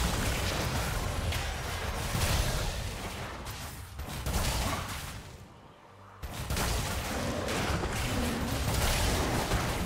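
Magic blasts and impacts burst in a video game fight.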